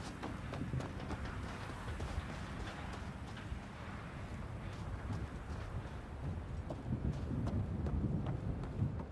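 Keyboard keys click and clack under quick presses.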